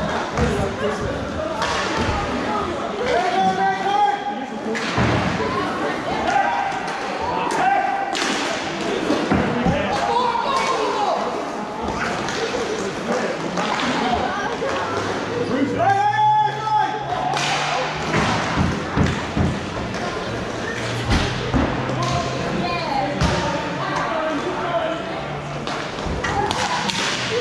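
Skates roll and scrape across a hard floor in a large echoing hall.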